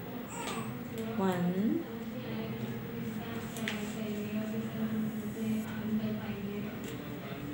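Paper cards rustle and tap as a child handles them.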